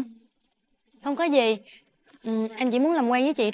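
A second young woman answers calmly.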